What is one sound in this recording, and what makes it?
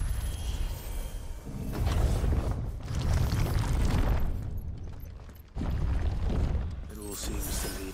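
Heavy footsteps echo on a stone floor.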